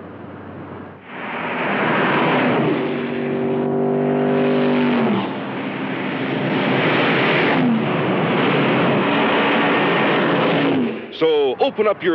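A car engine roars as a car speeds along a road.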